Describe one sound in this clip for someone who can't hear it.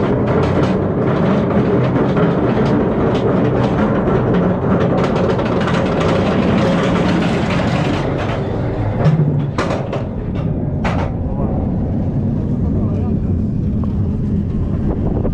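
Wind rushes hard past the riders.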